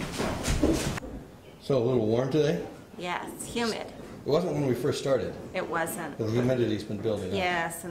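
A middle-aged woman speaks calmly and warmly, close to the microphone.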